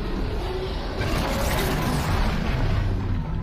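A loud blast bursts and crackles.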